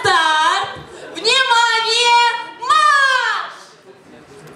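Young women sing out with animation through a microphone in an echoing hall.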